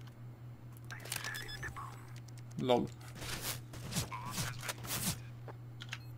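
A bomb's keypad beeps as it is armed.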